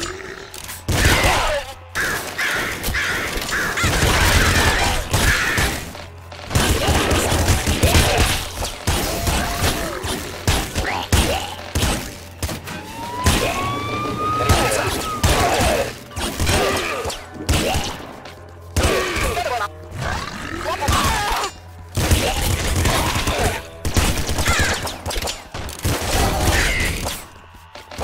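Video game explosions boom repeatedly.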